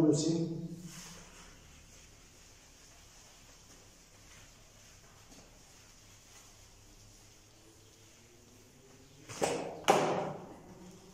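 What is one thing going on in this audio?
A sponge wipes across a whiteboard.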